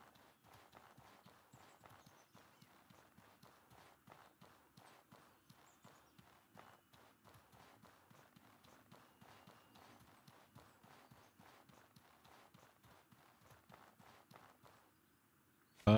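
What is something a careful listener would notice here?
Footsteps patter quickly and steadily on dirt.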